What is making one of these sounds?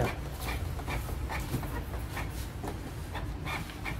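Paper rustles as a hand loads it into a printer.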